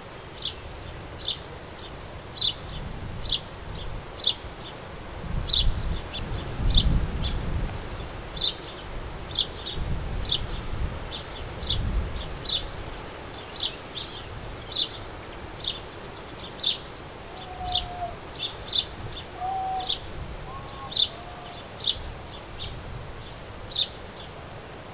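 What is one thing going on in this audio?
Small birds chirp in short, sharp calls over and over.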